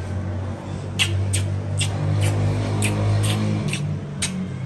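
Loud kisses smack on a cheek again and again.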